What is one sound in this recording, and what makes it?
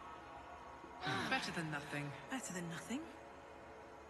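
A magical spell whooshes and shimmers.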